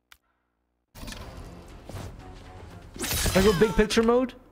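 Swords clash in a fast fight.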